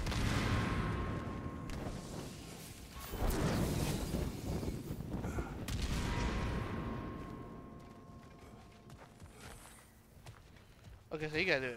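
Heavy footsteps crunch over rough ground.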